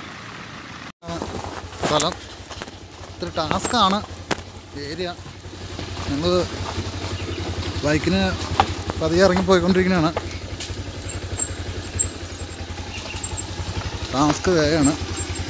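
A motorbike engine rumbles steadily up close.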